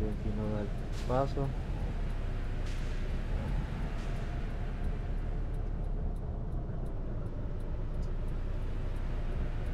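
Traffic passes by on the road.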